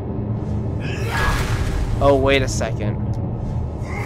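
A magical energy burst whooshes up with a shimmering ring.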